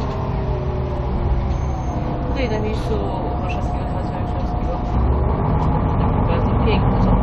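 Traffic passes by on a wet road with a hiss of tyres.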